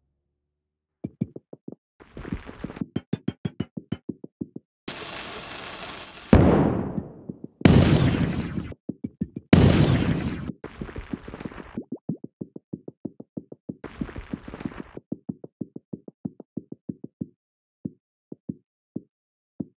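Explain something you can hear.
Small balls tick and clatter in quick succession.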